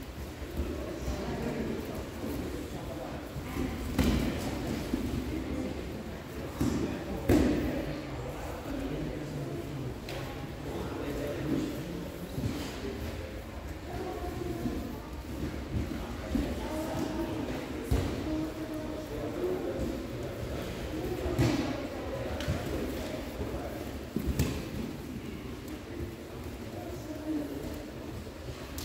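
Voices of several men chatter in a large echoing hall.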